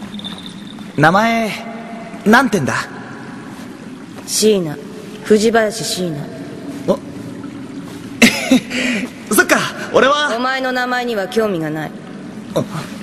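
A young man speaks in a friendly, cheerful voice.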